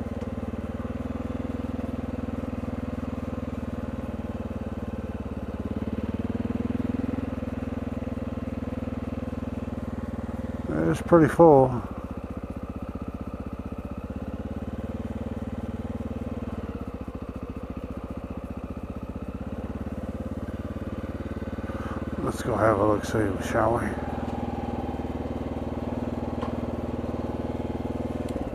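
A motorcycle engine hums steadily as it rolls along slowly, then idles.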